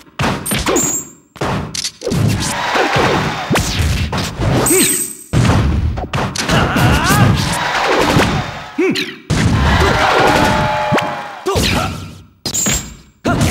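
Video game fighters land sharp hits and whooshing attacks.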